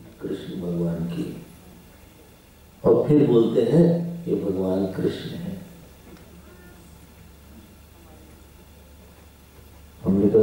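A man speaks calmly into a microphone, heard through a loudspeaker with pauses.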